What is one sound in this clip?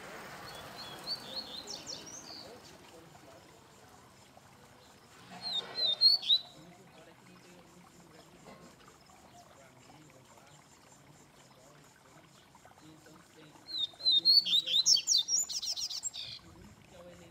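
A caged songbird sings in short bursts of chirps and trills, close by.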